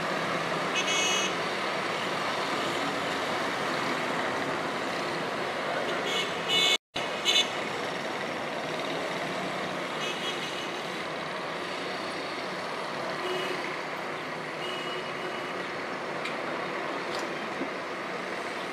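Traffic hums steadily across a town in the distance.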